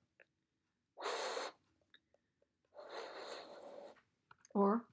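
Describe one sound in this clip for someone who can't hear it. Breath rushes as an elderly woman blows softly.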